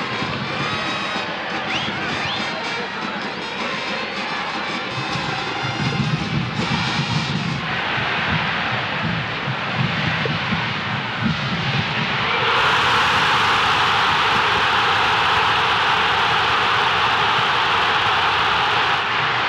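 A large stadium crowd cheers loudly, swelling into a roar.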